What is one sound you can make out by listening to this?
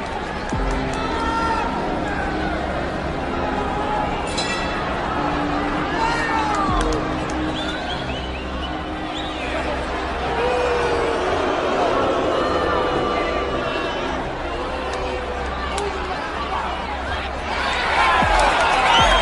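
A crowd cheers and shouts in a large hall, growing louder near the end.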